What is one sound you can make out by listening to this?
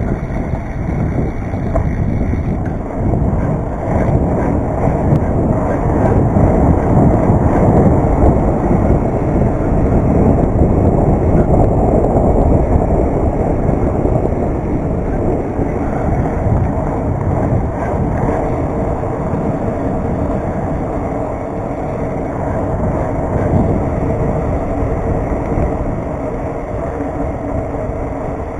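Bike tyres roll and rumble steadily over a paved path.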